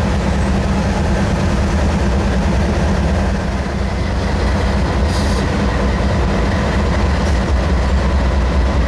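Locomotive wheels roll and clank over the rails.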